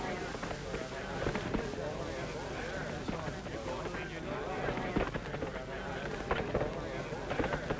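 A horse's hooves thud on dirt.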